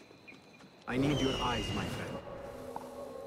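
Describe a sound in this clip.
An eagle screeches overhead.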